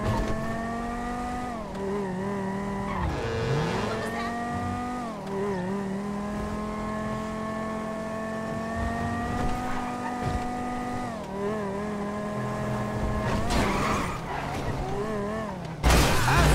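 A car engine revs and hums steadily, its pitch rising and dropping as it shifts gears.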